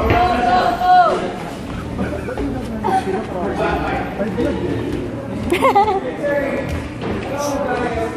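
A crowd of people talks and shouts nearby, in a noisy room.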